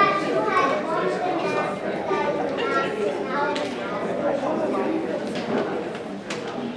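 A woman speaks calmly through a microphone in a large echoing room.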